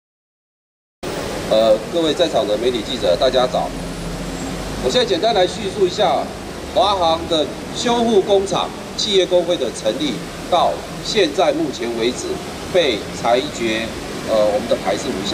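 A middle-aged man speaks forcefully into a microphone through a loudspeaker, outdoors.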